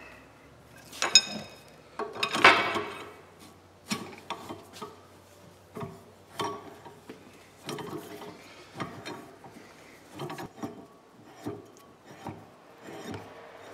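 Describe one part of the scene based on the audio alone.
Metal parts clank and clink.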